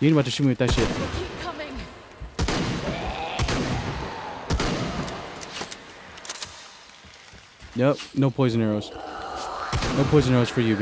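A shotgun fires loud, booming blasts.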